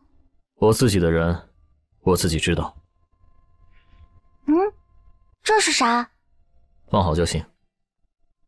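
A young man speaks calmly and close.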